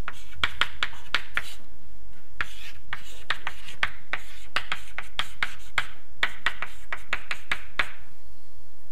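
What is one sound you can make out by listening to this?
Chalk taps and scrapes sharply on a blackboard.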